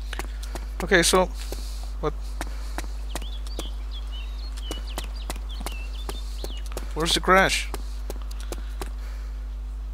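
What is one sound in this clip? Quick footsteps crunch on gravel.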